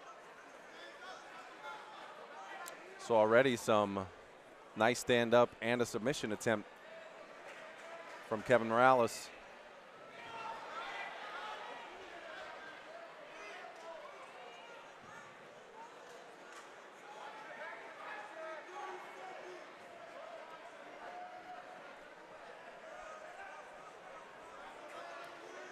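A crowd murmurs and chatters in a large hall.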